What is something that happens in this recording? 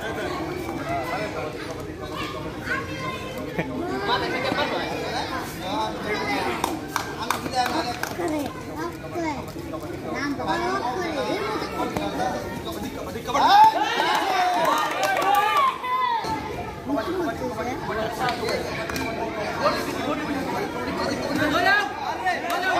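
Several young men shout and call out outdoors during a game.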